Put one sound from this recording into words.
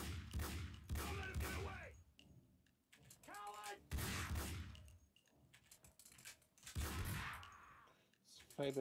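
Gunshots ring out with heavy echoing booms.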